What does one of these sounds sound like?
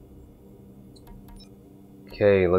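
Soft electronic menu clicks sound.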